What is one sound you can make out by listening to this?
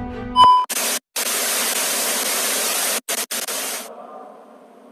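Loud static hisses.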